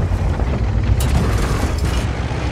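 A shell explodes nearby.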